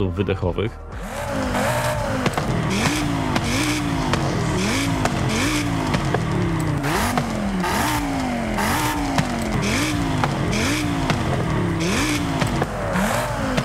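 A car engine revs repeatedly, rising and falling in pitch.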